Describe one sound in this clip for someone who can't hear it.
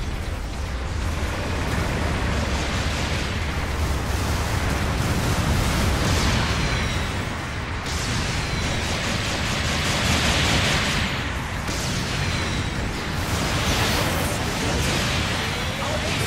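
A robot's thrusters roar steadily.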